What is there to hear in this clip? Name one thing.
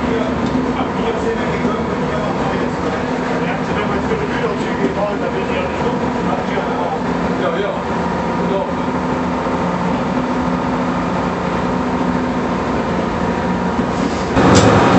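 A diesel railcar engine hums steadily while the train rolls along.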